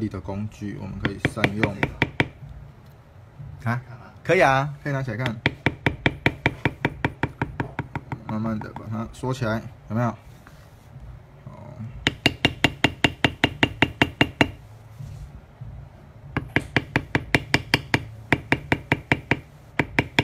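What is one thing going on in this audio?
A mallet taps rapidly and steadily on a leather stamping tool.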